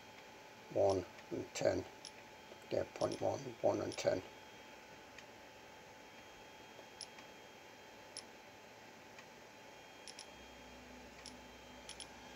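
A finger taps lightly on a touchscreen.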